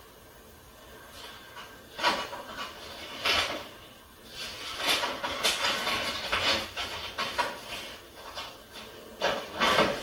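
Paper rustles as letters are handled and opened.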